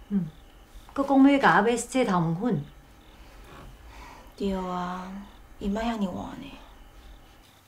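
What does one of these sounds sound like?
A young woman answers close by in a calm voice.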